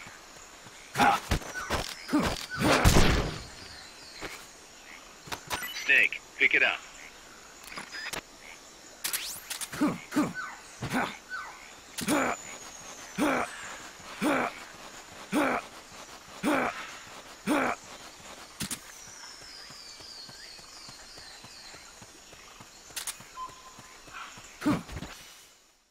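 Footsteps shuffle through leafy undergrowth at a steady pace.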